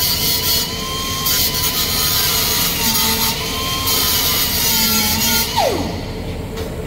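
An angle grinder screams loudly against metal, then winds down.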